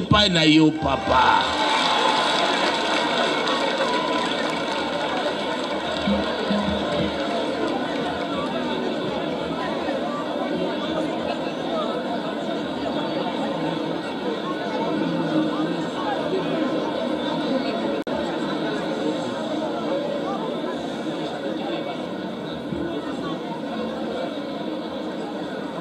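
A large crowd of men and women chatters and sings together outdoors.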